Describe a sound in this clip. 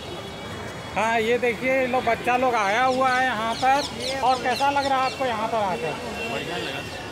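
A middle-aged man talks up close with animation.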